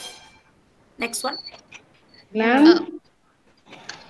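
A middle-aged woman speaks calmly over an online call.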